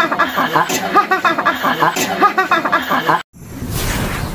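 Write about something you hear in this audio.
A man laughs loudly and heartily close by.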